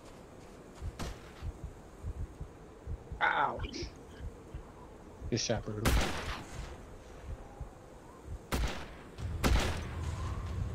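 Rifle shots crack sharply several times.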